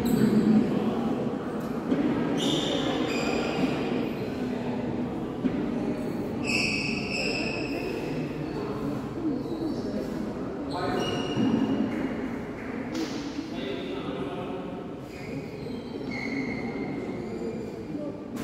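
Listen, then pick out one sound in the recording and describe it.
Children talk and call out in a large echoing hall.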